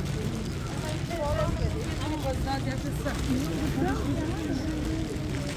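Women talk nearby as they pass.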